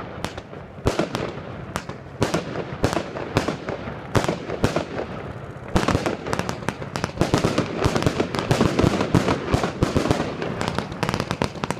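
Fireworks burst with sharp bangs and pops outdoors.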